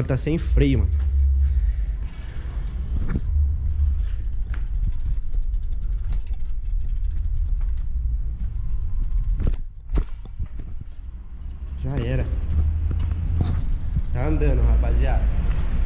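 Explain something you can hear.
Bicycle tyres roll over concrete with a low rumble.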